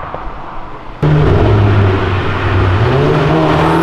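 A car engine hums steadily as the car drives by.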